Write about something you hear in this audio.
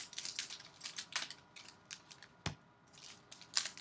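Trading cards flick and riffle quickly.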